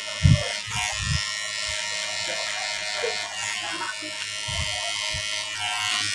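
Electric hair clippers buzz close by.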